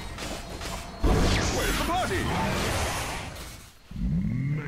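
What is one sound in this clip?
Fire roars and crackles as a spell bursts.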